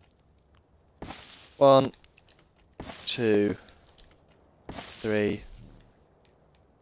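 A stone hatchet chops into a thatch wall with dry, rustling blows.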